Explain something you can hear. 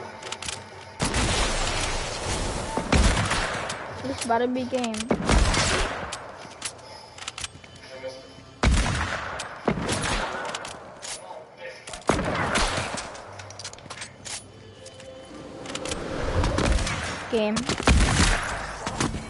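Loud gunshots blast in bursts, with booming echoes.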